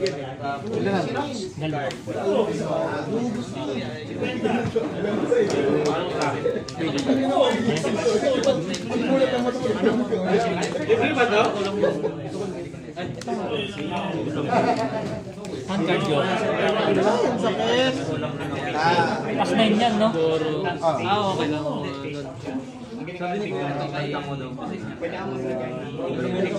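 Playing cards slide and tap softly as they are laid on a table.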